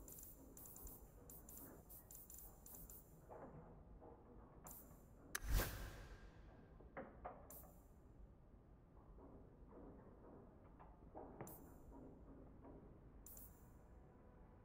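Short menu clicks and chimes sound as items are picked.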